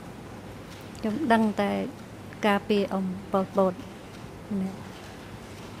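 An elderly woman speaks briefly into a microphone.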